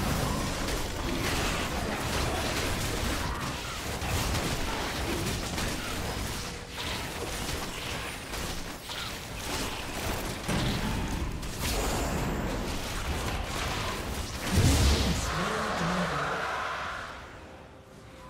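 Magical blasts and hits crackle and thump in a battle.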